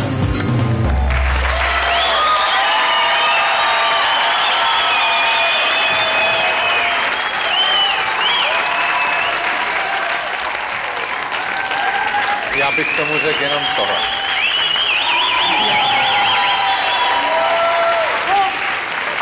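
A large audience claps and cheers loudly in an echoing hall.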